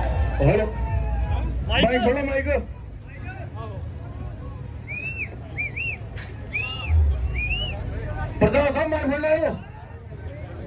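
A large crowd chants and shouts loudly outdoors.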